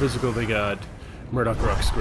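Fiery bolts whoosh past in a burst.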